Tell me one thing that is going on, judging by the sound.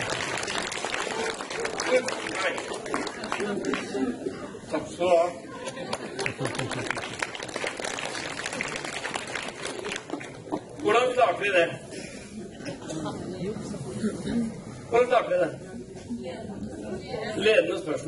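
An older man speaks through a microphone in a large echoing hall.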